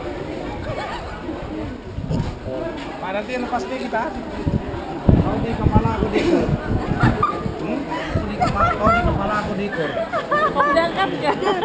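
A crowd of men and women chatters nearby, outdoors.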